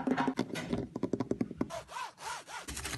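Fingernails tap and scratch on a rough rock.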